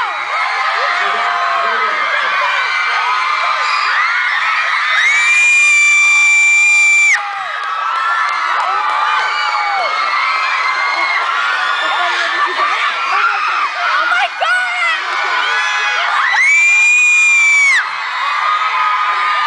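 A large crowd of young fans screams and cheers loudly, with long high shrieks swelling at times.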